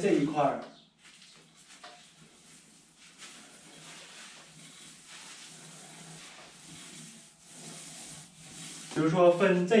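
A paint roller rolls softly across a wall.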